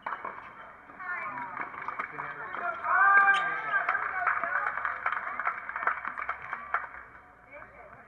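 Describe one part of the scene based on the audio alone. A small crowd cheers and shouts outdoors.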